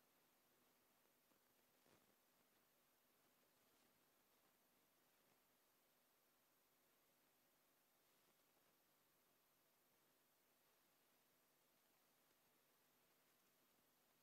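Cloth rustles softly as a person bows down and rises again.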